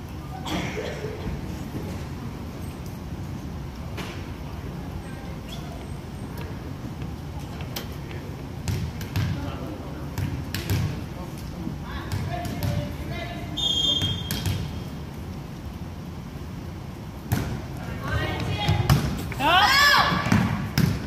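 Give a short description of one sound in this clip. Girls chatter and call out in a large echoing gym.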